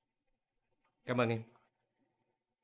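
A man answers briefly and calmly nearby.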